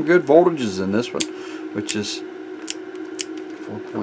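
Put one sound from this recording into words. Buttons on a meter click as they are pressed.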